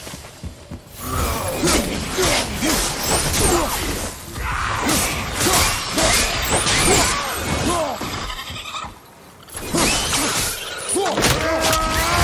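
Chains whip and blades slash through the air in a fight.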